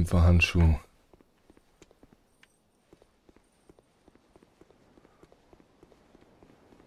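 Armoured footsteps run quickly on stone.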